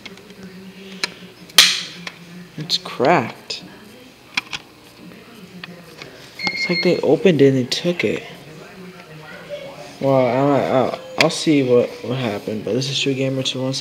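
A plastic disc case clicks and rattles as it is handled close by.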